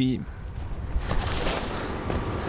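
A body lands heavily and rolls.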